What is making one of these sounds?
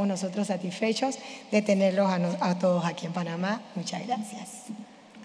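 A woman speaks through a microphone with animation, echoing in a large hall.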